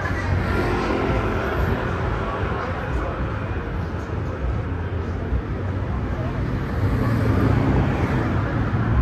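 Outdoor street traffic rumbles in the distance.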